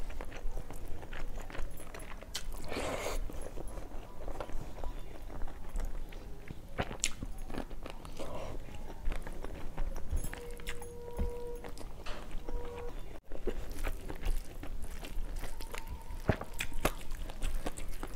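A woman chews food with wet mouth sounds, close to a lapel microphone.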